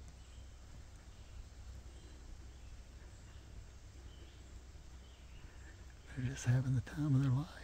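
A small animal rustles through dry leaves on the ground.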